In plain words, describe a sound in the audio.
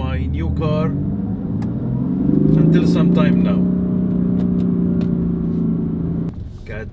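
A car engine hums and revs up steadily while driving.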